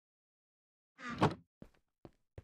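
A wooden chest thumps shut.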